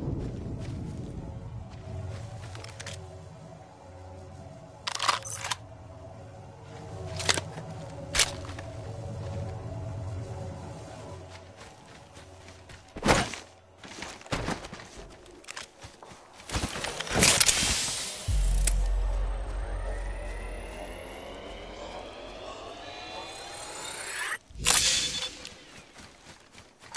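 Footsteps thud on grass as a game character runs.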